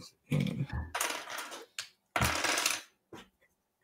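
Small plastic pieces rattle and clatter.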